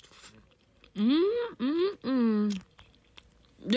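A young woman makes loud, wavering vocal noises close by.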